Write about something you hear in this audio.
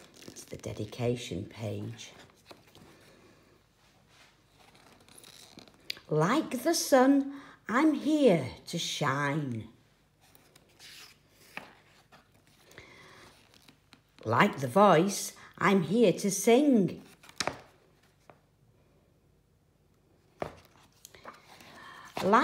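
Book pages rustle and flap as they are turned.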